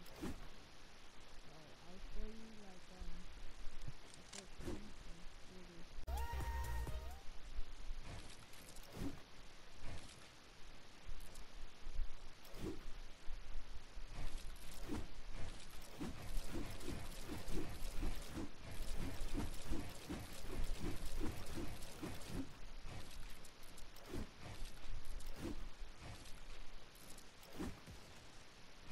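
Wooden building pieces clack and thud rapidly into place in a game.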